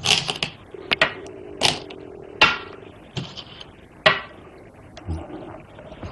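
A stone clicks onto a board.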